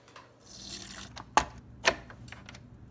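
A coffee machine's lid clicks open and shut.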